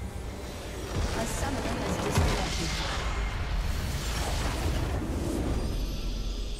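A large magical structure explodes with a deep boom.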